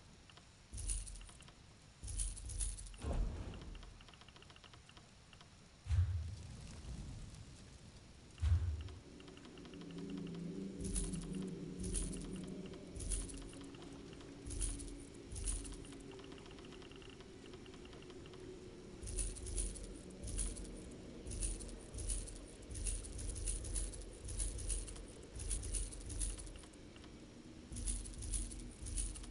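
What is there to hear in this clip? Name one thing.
Short coin-like clinks sound again and again.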